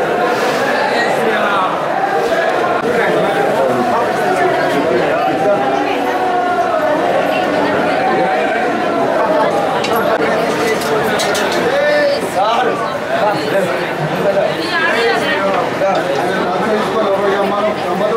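A crowd of men chant together loudly in an echoing space.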